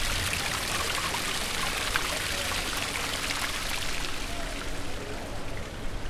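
Water splashes steadily from a fountain close by, then fades.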